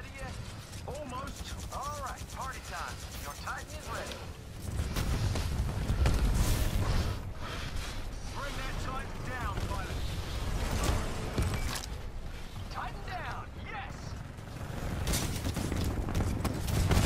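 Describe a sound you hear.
Heavy gunfire rattles rapidly.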